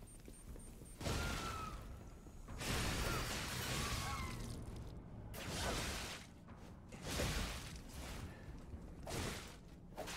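Blades swoosh and clash in loud bursts.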